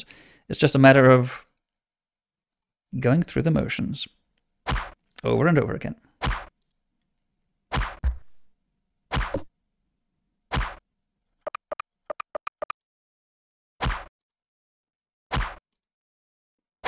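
A bowstring twangs as an arrow flies.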